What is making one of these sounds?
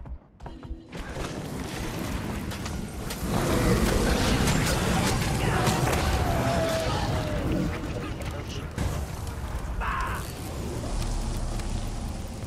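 Magic blasts roar and crackle.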